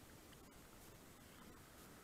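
A paddle dips and splashes in the water.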